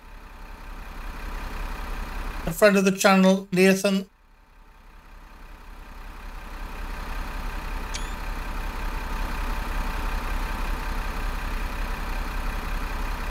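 A bus engine rumbles steadily and slowly grows louder.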